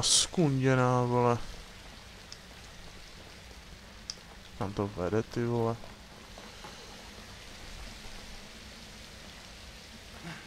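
Water pours down steadily in a waterfall.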